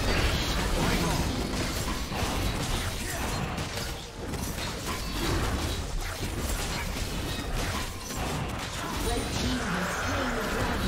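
Magic blasts and sword hits crackle and clash in a hectic game battle.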